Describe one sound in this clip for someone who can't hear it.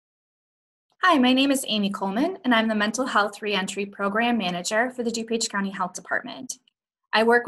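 A woman speaks calmly into a microphone over an online call.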